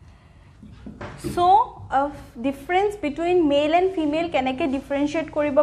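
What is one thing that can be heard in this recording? A young woman speaks clearly and with animation, as if teaching.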